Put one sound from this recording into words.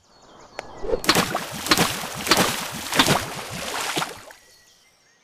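Water splashes as a car drives through it.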